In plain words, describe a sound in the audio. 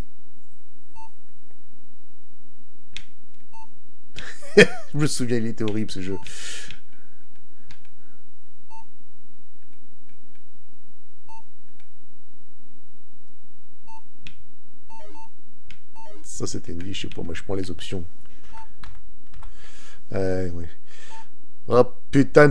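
A video game beeps softly at a steady pace.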